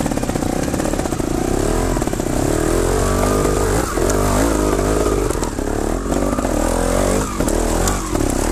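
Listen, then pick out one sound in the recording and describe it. Tyres crunch and bump over rocky ground.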